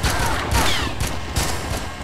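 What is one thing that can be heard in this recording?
A pistol fires a loud shot.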